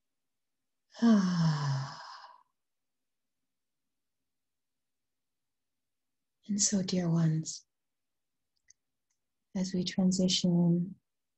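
A woman speaks calmly and close to a microphone, in short bursts with long pauses.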